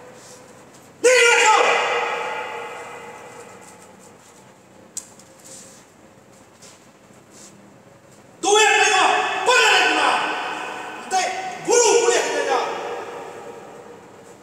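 A middle-aged man shouts angrily nearby, his voice echoing off hard walls.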